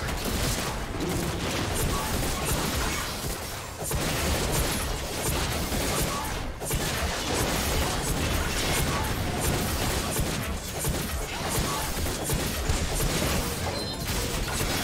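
Game spell effects whoosh and crackle during a fight.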